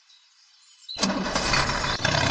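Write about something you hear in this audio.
A toy excavator's motor whines loudly.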